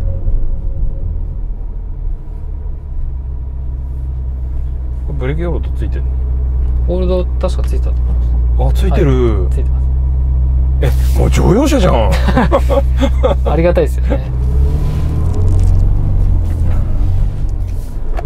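A car engine rumbles low and steadily inside the cabin.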